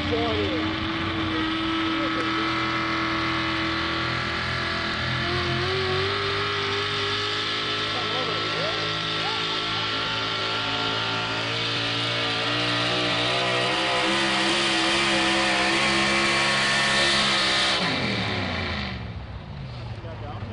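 A pulling truck's engine roars loudly and steadily, climbing in pitch before winding down.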